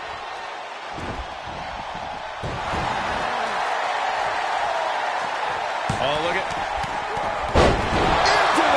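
A heavy thud sounds as a body slams onto the ring mat.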